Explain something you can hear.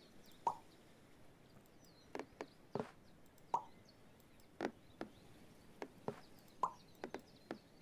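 Tiles click softly into place with short chiming tones.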